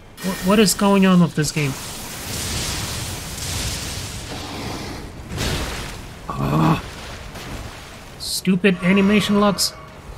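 A spell bursts with a crackling flash.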